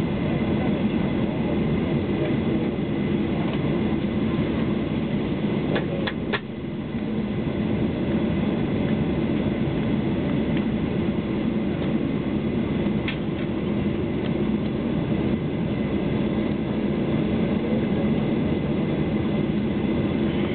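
A jet engine roars steadily inside an aircraft cabin.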